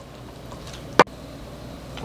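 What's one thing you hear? Slices of French toast are set down into a ceramic bowl.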